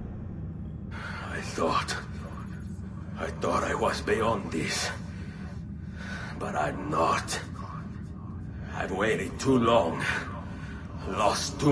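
A man speaks slowly and with emotion, in a low, strained voice, close up.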